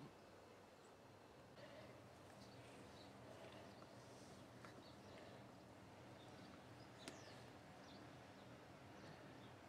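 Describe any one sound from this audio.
A cat purrs steadily up close.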